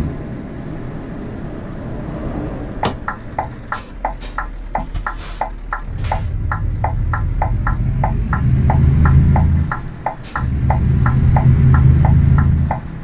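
A truck engine rumbles steadily and grows louder.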